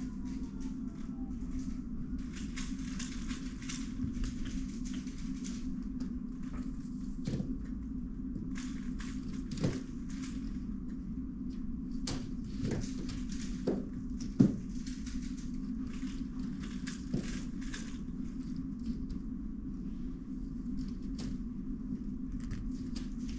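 Plastic puzzle cubes click and rattle as they are handled.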